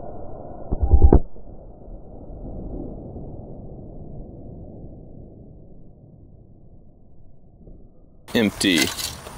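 A loud explosion booms outdoors and rumbles away.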